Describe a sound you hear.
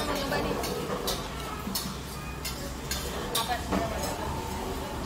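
Cutlery clinks and scrapes against plates.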